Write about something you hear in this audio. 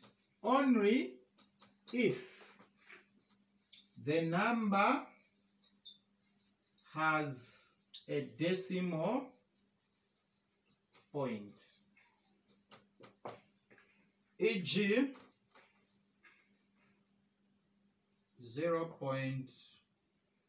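A man speaks calmly in short phrases, like a teacher explaining.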